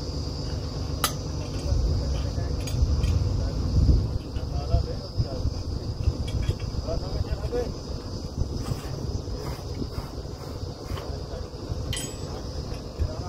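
Metal clanks on a drill pipe.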